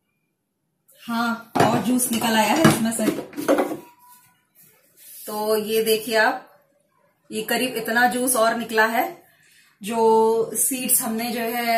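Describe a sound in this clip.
A woman talks calmly, close by.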